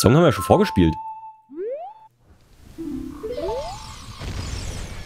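A short tune of flute-like notes plays.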